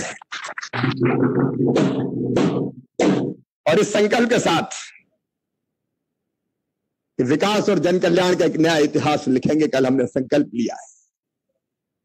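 A middle-aged man speaks forcefully into a microphone, heard through loudspeakers.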